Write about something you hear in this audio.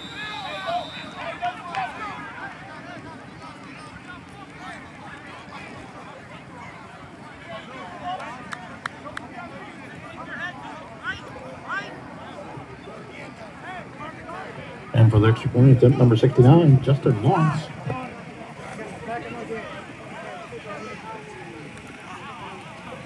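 A crowd of spectators chatters and calls out in the open air.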